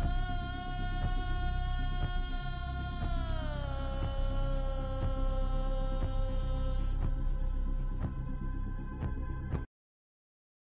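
Propeller aircraft engines drone loudly, then wind down in pitch.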